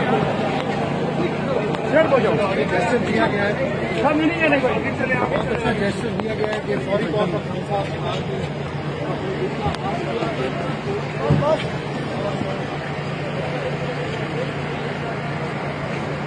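A crowd of men shouts and chants loudly close by, outdoors.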